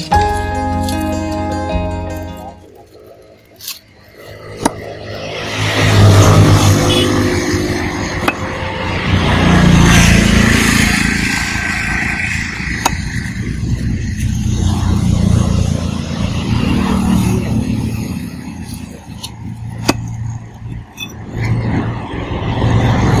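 A cleaver chops through fish on a wooden block with sharp knocks.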